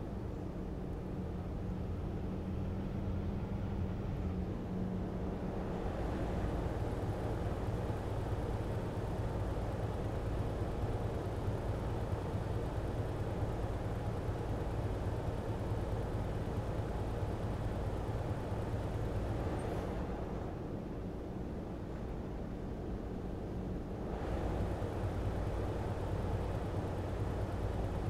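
A heavy truck engine rumbles steadily as it drives along.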